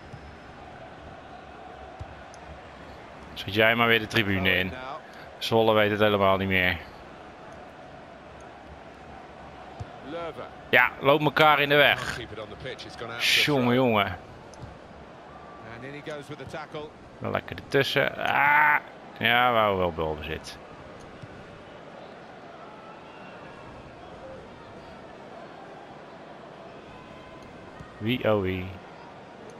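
A stadium crowd murmurs steadily in the background.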